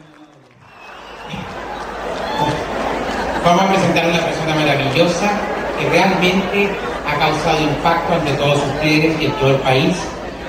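A man talks with animation into a microphone, heard through loudspeakers in a hall.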